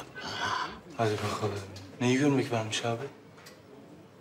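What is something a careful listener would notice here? A young man speaks quietly and earnestly, close by.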